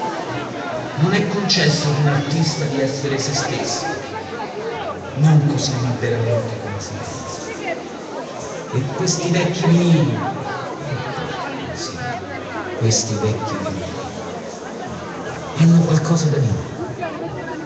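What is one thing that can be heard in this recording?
A man speaks loudly close by, with pauses.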